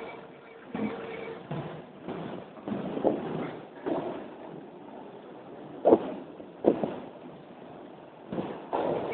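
Footsteps echo in a large, hollow underground space.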